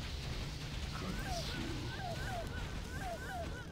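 Chirping, gliding magical tones ring out repeatedly.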